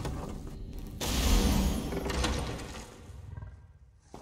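A magical wind rushes and whooshes.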